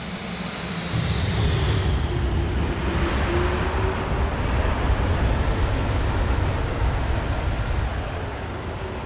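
Jet engines roar loudly as an airliner lands and slows on a runway.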